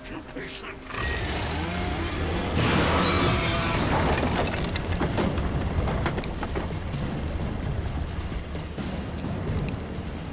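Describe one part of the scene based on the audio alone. A chainsaw roars loudly.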